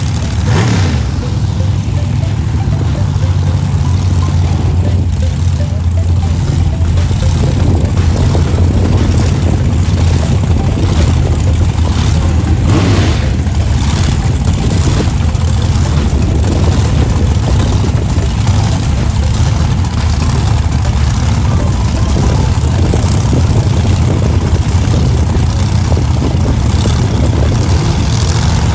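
A dragster engine idles with a deep, loud rumble.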